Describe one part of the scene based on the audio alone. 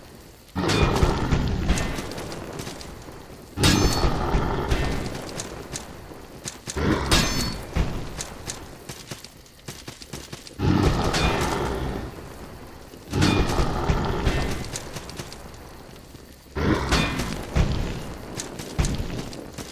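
A giant swings a heavy flail that crashes down with loud thuds.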